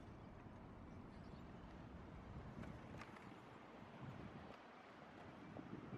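Bicycles roll past close by.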